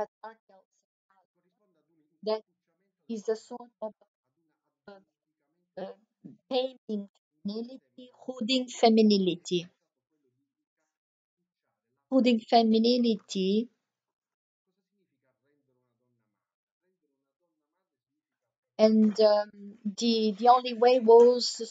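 A woman speaks with animation over an online call, with pauses.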